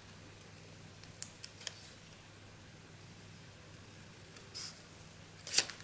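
Paper rustles and crinkles as fingers handle a cut-out.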